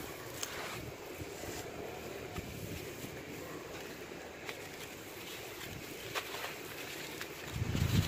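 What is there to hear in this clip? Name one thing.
Gloved hands scrape and rub at gritty soil.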